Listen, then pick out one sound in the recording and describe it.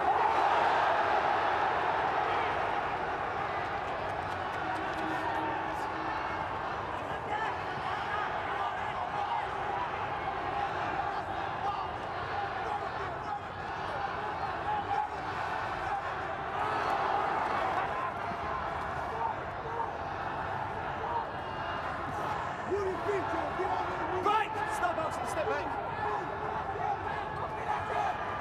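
A large crowd murmurs and cheers in a big hall.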